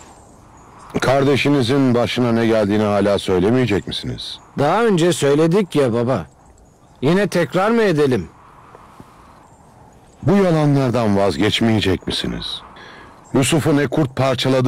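An elderly man speaks forcefully and with emotion, close by.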